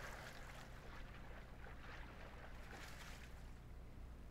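Water splashes as a swimmer paddles and climbs out.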